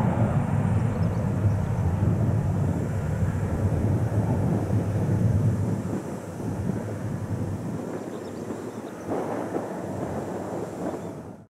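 A jet plane roars overhead at a distance, slowly fading.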